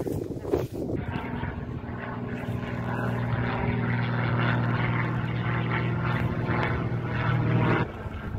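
A small propeller plane drones steadily overhead.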